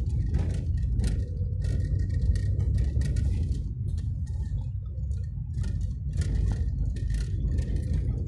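Tyres roll over a rough road.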